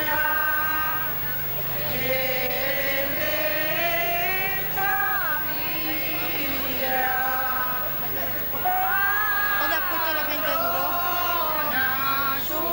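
A crowd of men and women sings together outdoors in slow, drawn-out notes.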